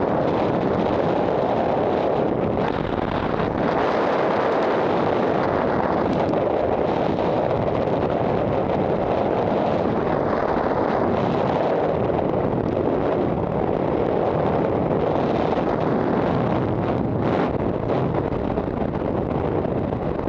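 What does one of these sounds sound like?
Strong wind roars steadily and loudly.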